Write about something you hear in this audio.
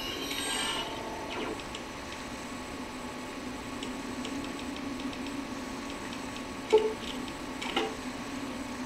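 Short game menu clicks sound from a television loudspeaker.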